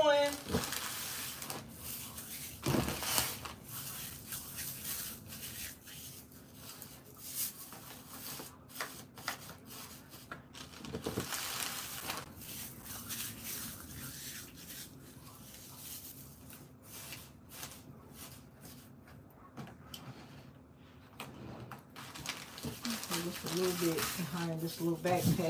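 A plastic bag filled with paper shred crinkles under a hand.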